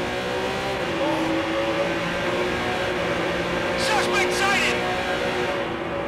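A car engine roars louder, echoing inside a tunnel.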